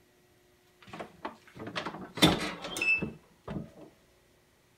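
A heat press lid is lifted open with a clunk.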